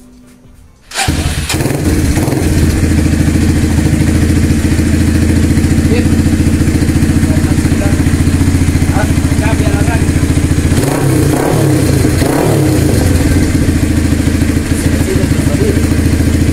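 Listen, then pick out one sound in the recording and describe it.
A motorcycle engine idles loudly with a steady, deep rumble.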